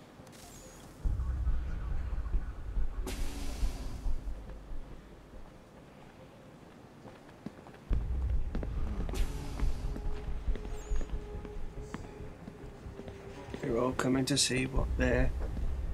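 Footsteps walk steadily on a hard floor.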